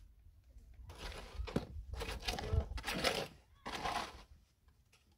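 A trowel scrapes wet mortar in a metal pan.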